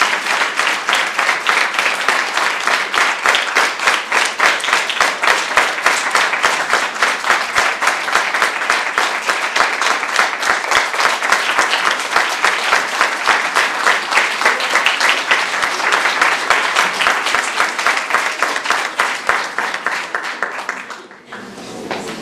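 An audience applauds loudly in a large room.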